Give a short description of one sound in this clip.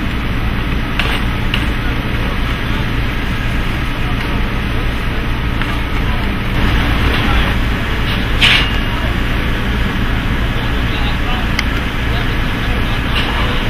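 Metal road cases and truss clank against a truck's metal floor.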